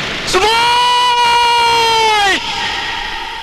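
A young man screams loudly.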